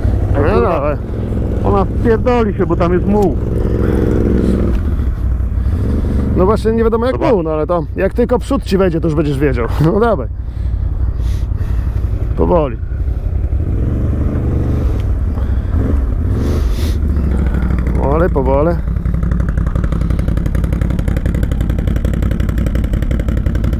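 Quad bike engines rumble steadily close by.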